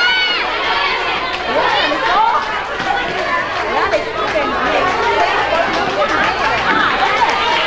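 A child's footsteps patter across the floor.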